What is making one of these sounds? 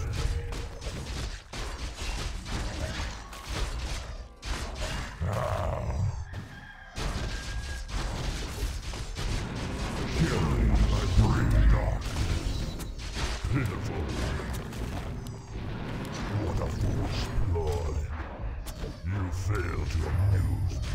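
Fantasy battle sounds of spells blasting and weapons clashing play throughout.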